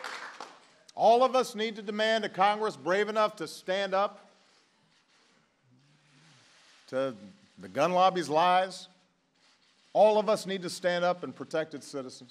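A man speaks slowly and emotionally into a microphone, pausing often.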